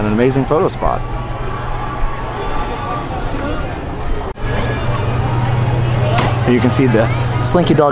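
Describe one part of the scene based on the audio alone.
A crowd of adults and children chatters and calls out nearby outdoors.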